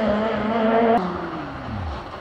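A rally car engine fades into the distance.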